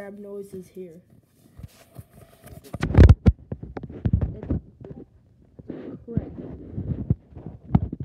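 Hands rub and squeeze a plush toy close by, with soft rustling and thumping.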